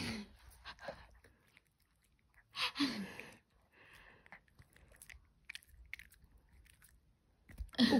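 A small dog crunches and chews a treat close by.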